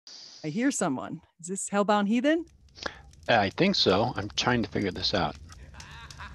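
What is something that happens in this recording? A woman speaks with animation into a microphone over an online call.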